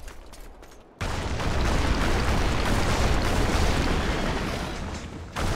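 Flames roar loudly.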